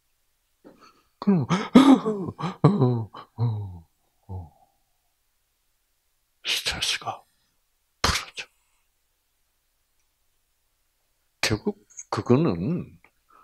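An elderly man speaks calmly into a microphone, with pauses, heard through a loudspeaker.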